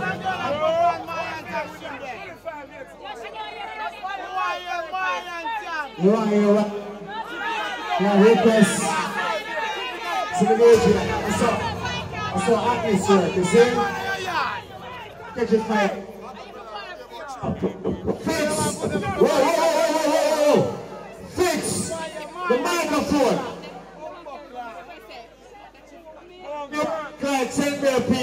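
A man chants loudly into a microphone over a loudspeaker.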